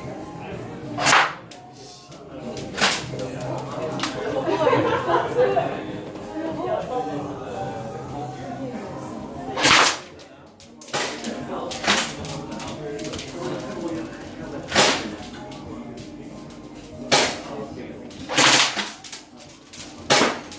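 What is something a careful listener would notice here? Sharp shots from an airsoft gun ring out, one every few seconds.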